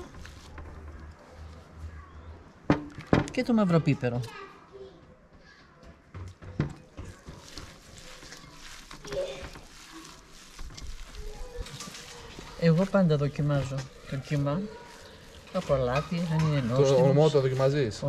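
Raw minced meat squelches as hands knead it.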